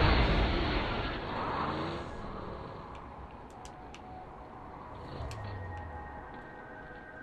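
A vehicle engine roars and rumbles.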